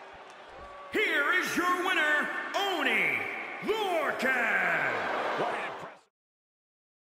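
A man roars and shouts triumphantly.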